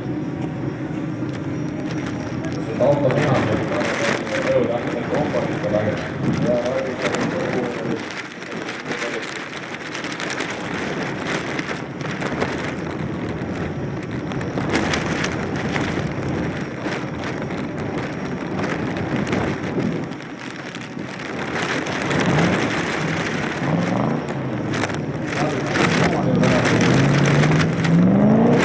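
Car engines roar and rev hard.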